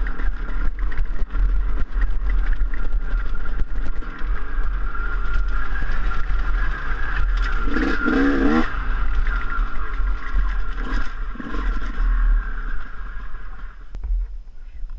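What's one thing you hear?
A dirt bike engine hums steadily while riding.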